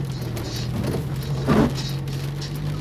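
A windshield wiper sweeps across the glass.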